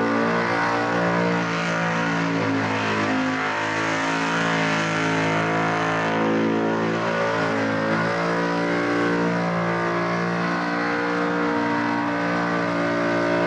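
Spinning tyres screech on tarmac.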